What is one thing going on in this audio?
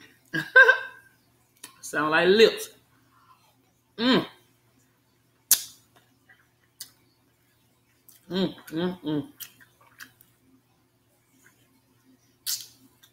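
A woman chews food.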